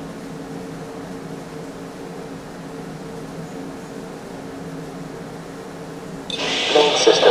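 Soft electronic music plays quietly.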